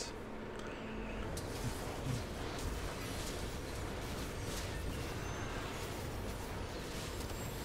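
Fantasy battle effects whoosh and crackle.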